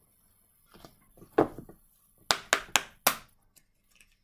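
Playing cards flick and snap as they are shuffled.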